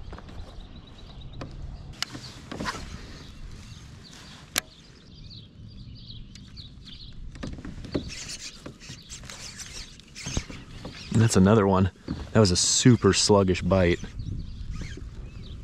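A fishing reel clicks as it is cranked.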